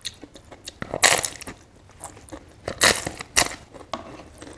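A crisp cracker crunches loudly as a woman bites into it.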